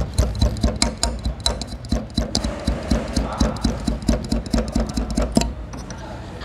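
A plastic clip clicks and rattles against a plastic vent.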